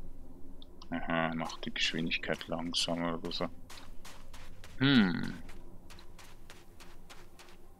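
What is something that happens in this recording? Footsteps crunch softly on sand.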